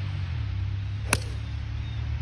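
A golf club sharply strikes a ball off a tee.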